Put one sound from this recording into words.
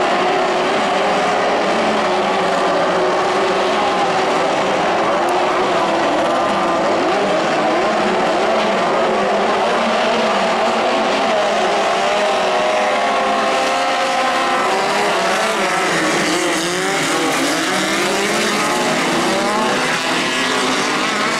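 Many race car engines roar and rev loudly nearby.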